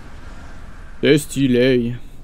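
A young man speaks close to a headset microphone.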